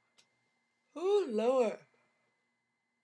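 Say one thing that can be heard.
A woman yawns loudly and long.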